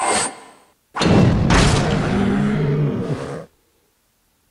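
A heavy crashing blast booms and rumbles.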